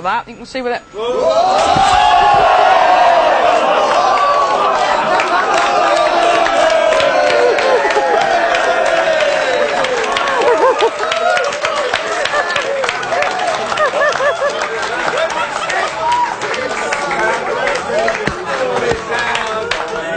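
A group of men laugh loudly and cheer.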